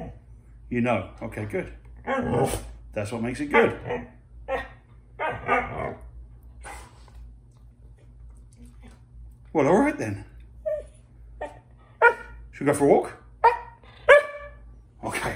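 A husky dog howls and yowls in short, rising and falling bursts close by.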